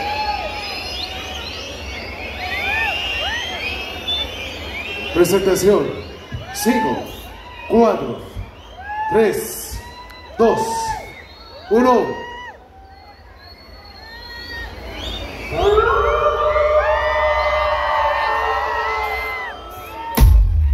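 Loud electronic music pounds through a concert sound system outdoors.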